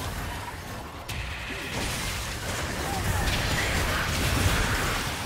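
Fantasy battle sound effects of spells and clashing blows build into a noisy fight.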